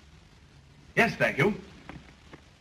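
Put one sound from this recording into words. A man briefly answers politely.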